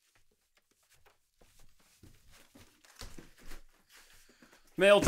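Footsteps approach across a quiet room.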